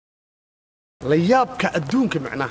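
A man speaks excitedly.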